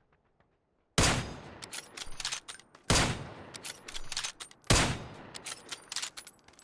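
Gunshots ring out loudly, one after another.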